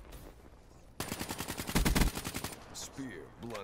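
A rapid burst of automatic gunfire rattles loudly.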